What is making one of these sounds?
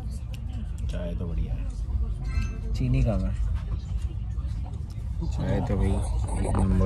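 A man speaks quietly and briefly close by.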